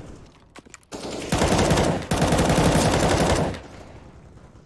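A rifle fires a rapid burst of shots.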